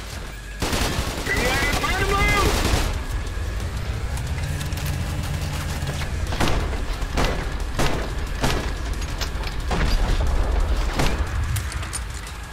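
Guns fire in rapid bursts of loud shots.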